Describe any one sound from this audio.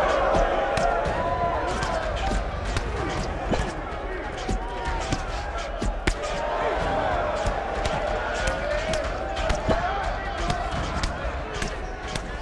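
Punches thud against bodies in quick, uneven bursts.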